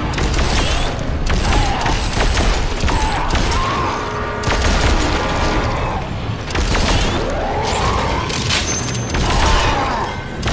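A monster shrieks and snarls.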